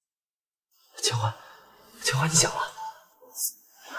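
A young man speaks softly and gently, close by.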